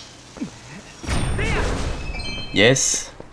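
A sword swishes and strikes with a loud burst.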